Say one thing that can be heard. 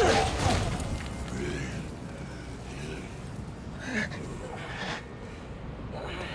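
Electric sparks crackle and sizzle.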